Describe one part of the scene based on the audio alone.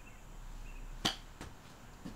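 A golf club strikes a ball with a sharp smack.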